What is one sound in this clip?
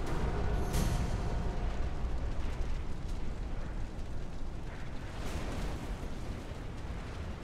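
Metal tank tracks clank and squeal.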